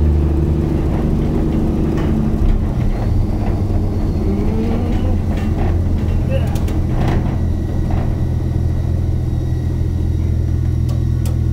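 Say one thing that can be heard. Loose metal panels rattle and clank as a vehicle bumps along.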